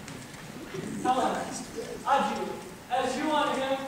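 A young man speaks loudly from a distance in a large hall.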